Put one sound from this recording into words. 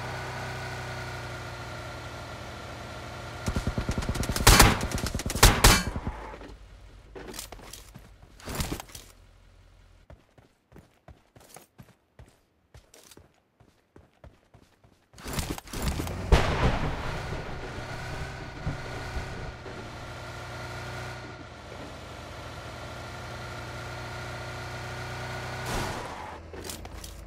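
A car engine hums steadily as a car drives over rough ground.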